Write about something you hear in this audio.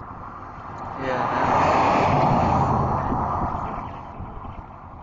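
A pickup truck drives past close by.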